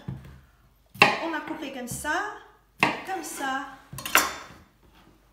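A knife chops on a wooden board.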